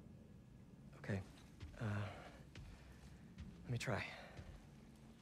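Another young man speaks calmly.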